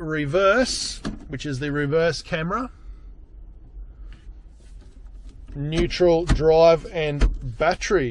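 A gear lever clicks as it is moved.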